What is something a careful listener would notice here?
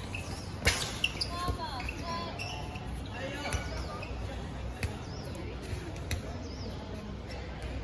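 Basketballs bounce on an outdoor court.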